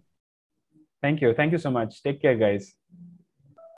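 A young man speaks through an online call.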